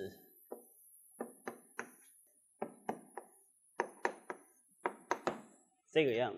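Chalk taps sharply on a board in quick strokes.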